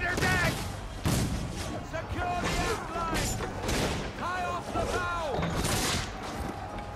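Cannons fire with loud, heavy booms.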